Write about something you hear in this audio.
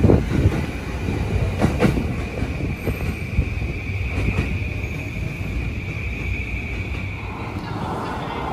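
Train brakes squeal with a steady high whine.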